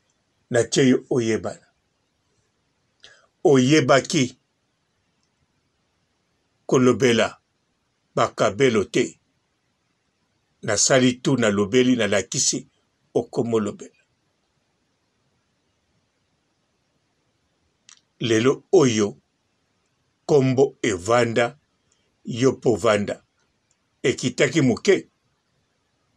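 A man speaks calmly close to a microphone, in short bursts with pauses.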